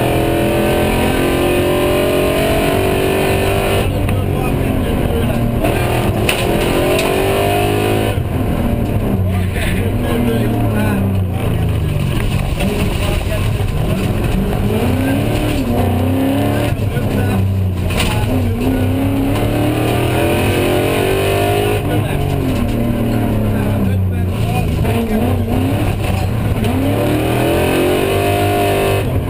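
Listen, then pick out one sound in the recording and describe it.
A rally car engine roars and revs hard, rising and falling in pitch as gears change.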